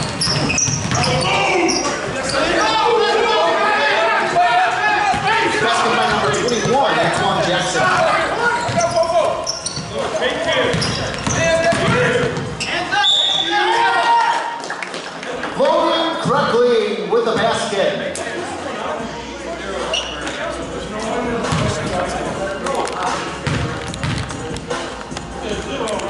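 Players' sneakers squeak on a hardwood floor in a large echoing gym.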